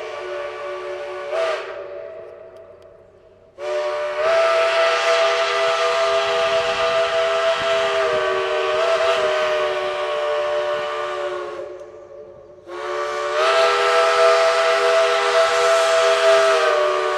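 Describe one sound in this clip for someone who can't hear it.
A steam locomotive's whistle blows in long, loud, wailing blasts.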